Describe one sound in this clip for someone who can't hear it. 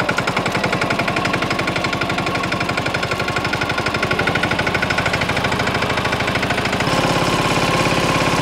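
A small tractor diesel engine chugs steadily up close.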